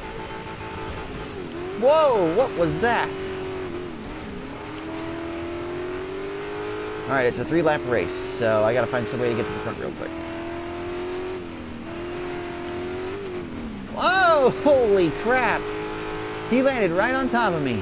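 Engines of other race cars roar past close by.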